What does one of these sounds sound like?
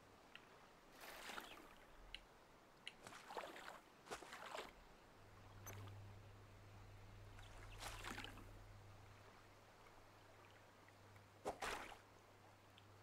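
Water splashes softly as a small boat is paddled.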